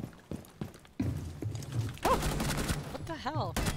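A gun fires a short burst of shots.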